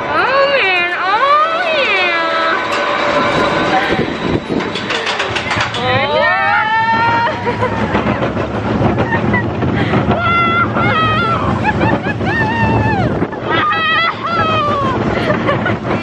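A young woman screams and laughs close by.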